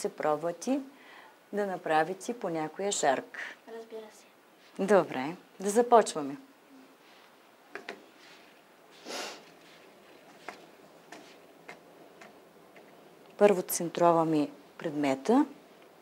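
A middle-aged woman talks with animation close to a microphone.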